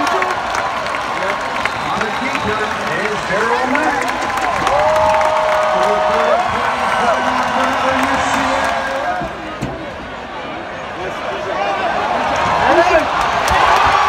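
A large stadium crowd cheers and chatters loudly all around.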